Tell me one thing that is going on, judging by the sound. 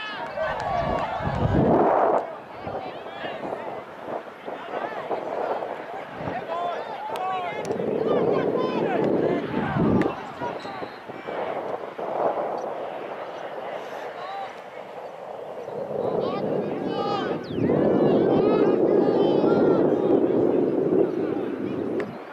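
Young players shout to each other across the field.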